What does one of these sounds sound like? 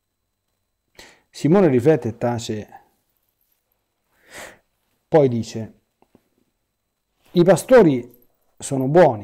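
A middle-aged man speaks calmly and haltingly into a close microphone, with pauses.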